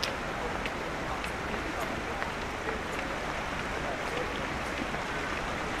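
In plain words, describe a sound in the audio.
A shallow stream flows and burbles steadily.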